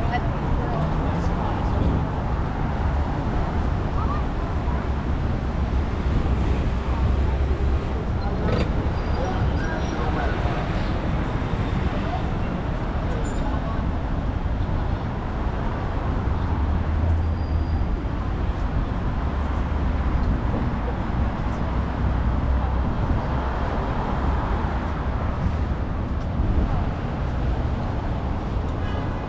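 Wind blows into a microphone outdoors.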